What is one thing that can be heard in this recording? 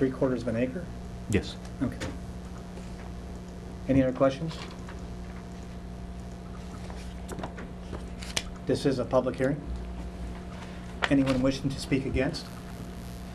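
A man speaks calmly into a microphone, in short phrases.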